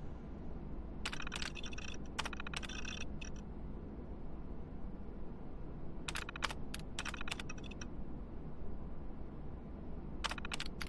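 A computer terminal clicks and chirps as text prints out.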